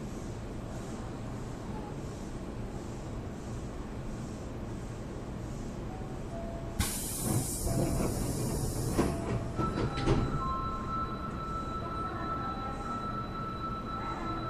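A train hums steadily while standing at a platform.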